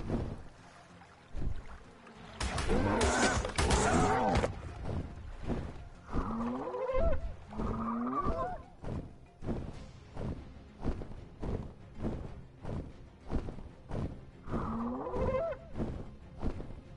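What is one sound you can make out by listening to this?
A large flying reptile beats its leathery wings.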